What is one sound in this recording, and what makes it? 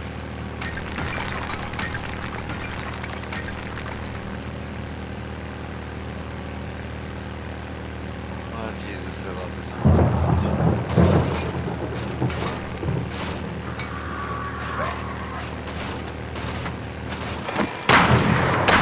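A small motorbike engine hums steadily.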